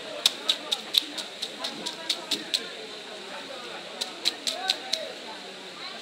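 A knife scrapes scales off a fish in quick, rasping strokes.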